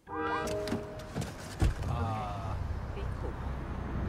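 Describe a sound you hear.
A car door opens with a thud.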